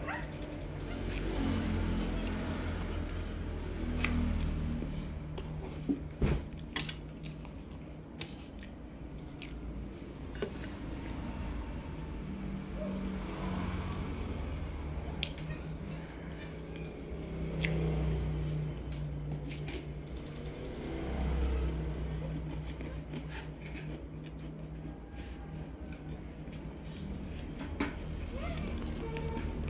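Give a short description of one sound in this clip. A woman chews soft cake close to a microphone.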